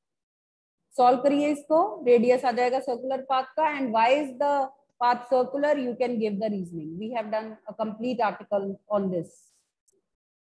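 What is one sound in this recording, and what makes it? A middle-aged woman speaks calmly, as if explaining, through a microphone on an online call.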